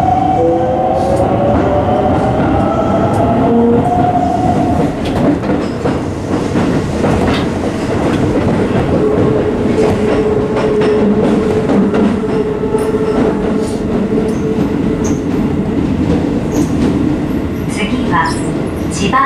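A subway train rumbles loudly along the track.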